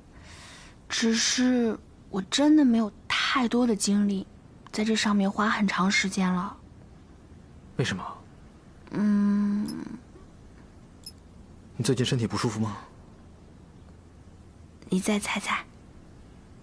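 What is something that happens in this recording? A young woman speaks lightly and close by.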